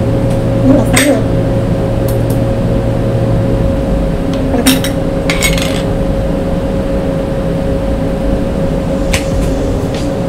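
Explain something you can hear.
A metal grater knocks against a plate.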